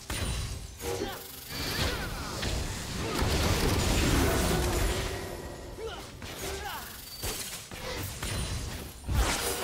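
Magic spells whoosh and crackle in a fast video game battle.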